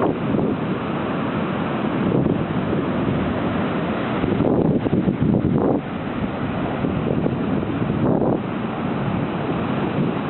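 Waves crash and wash over rocks close by.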